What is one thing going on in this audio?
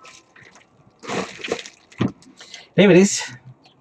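Plastic bubble wrap crinkles and rustles as it is handled.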